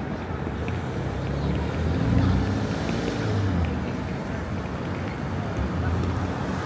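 Busy city traffic rumbles steadily outdoors.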